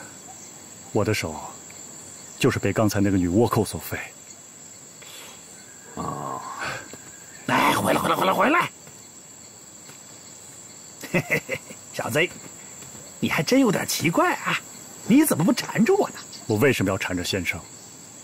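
A man speaks with animation and laughs up close.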